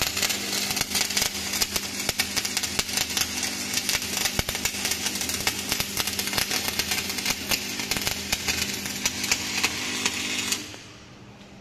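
An electric welding arc crackles and sizzles steadily.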